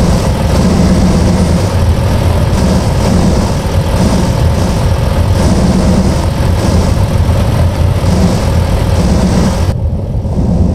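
Truck tyres crunch over gravel.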